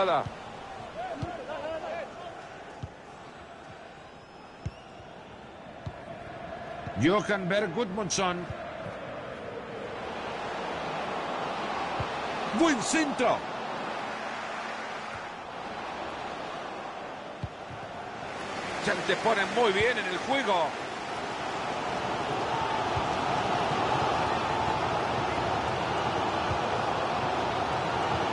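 A large stadium crowd roars steadily, swelling louder at times.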